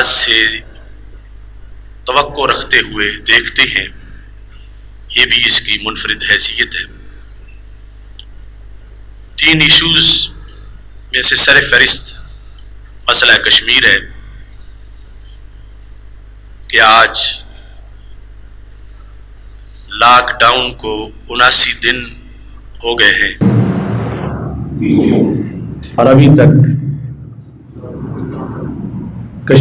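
An elderly man speaks slowly and solemnly into a microphone, heard through loudspeakers in an echoing hall.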